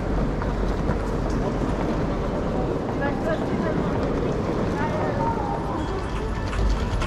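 A crowd murmurs and footsteps echo in a large hall.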